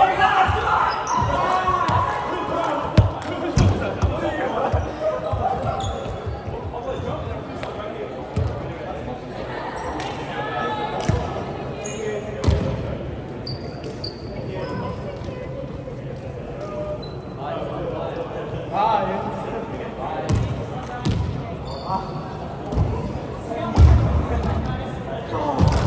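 A volleyball is struck and thuds in a large echoing sports hall.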